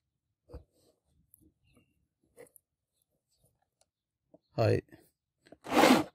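Cloth rustles softly as it is handled.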